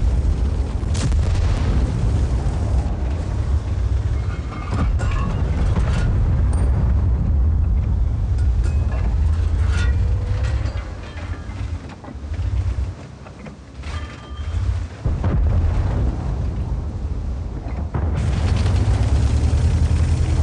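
A tank engine rumbles deeply as the tank drives.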